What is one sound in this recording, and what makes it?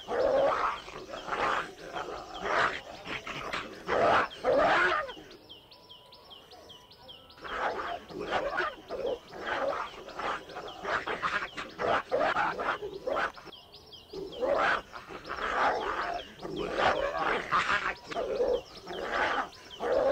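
Dogs growl and snarl as they fight up close.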